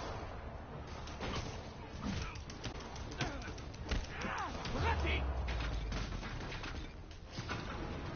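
Punches and impacts thud in a fight.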